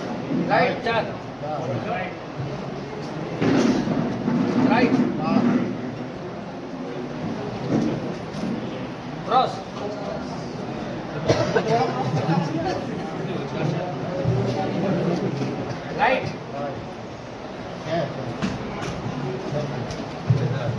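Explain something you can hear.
Several men talk over one another throughout.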